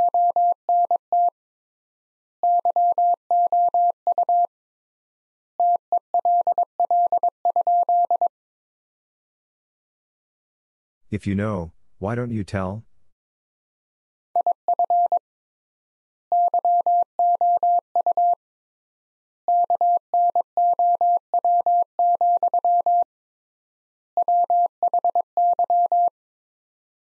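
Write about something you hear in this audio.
A telegraph key taps out Morse code in short and long beeps.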